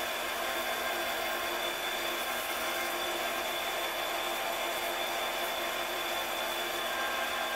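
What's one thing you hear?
A lathe spindle hums steadily as it spins.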